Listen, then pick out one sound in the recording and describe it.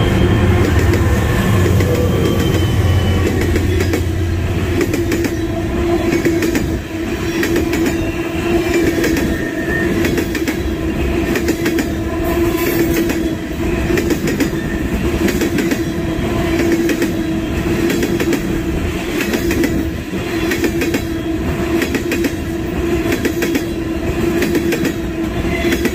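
Steel wheels squeal faintly on the rails.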